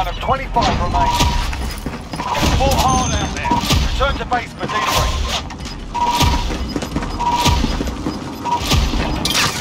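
Short electronic beeps sound as a score counts up.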